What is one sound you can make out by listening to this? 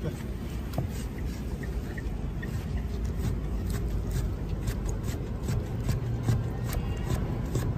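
A cleaver chops through meat onto a wooden board with repeated knocks.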